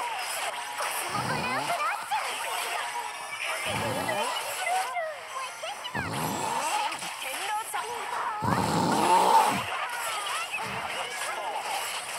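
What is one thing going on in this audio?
Magic blasts and sword hits crash and whoosh in quick bursts.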